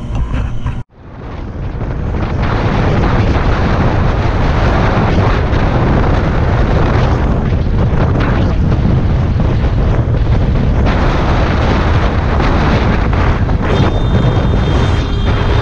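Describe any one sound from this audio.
Wind roars loudly past the rider.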